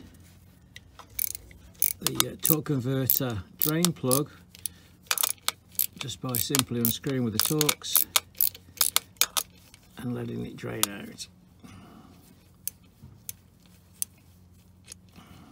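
A ratchet wrench clicks in quick bursts.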